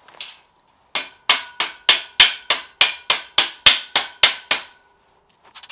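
A mallet taps repeatedly on steel.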